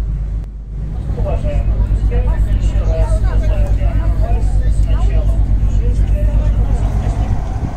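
A middle-aged woman talks nearby.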